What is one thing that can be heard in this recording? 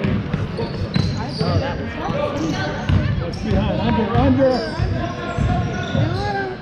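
Young players and spectators call out and talk.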